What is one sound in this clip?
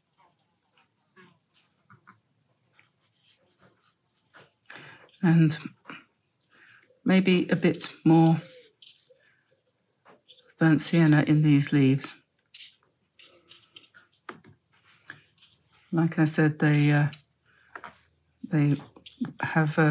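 A wet paintbrush brushes softly on paper.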